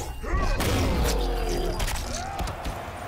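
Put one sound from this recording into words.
Heavy hammer blows thud and crunch with a wet splatter.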